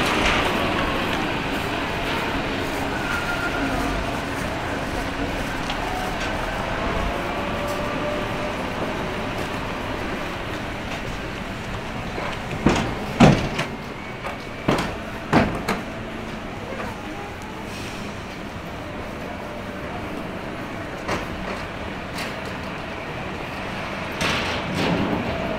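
Footsteps tap on pavement.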